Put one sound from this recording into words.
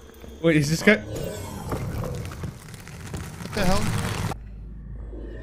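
Game sound effects crackle and whoosh.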